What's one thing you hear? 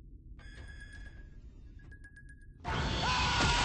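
An electronic tone beeps in short bursts.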